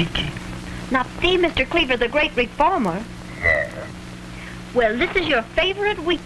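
A young woman speaks into a telephone.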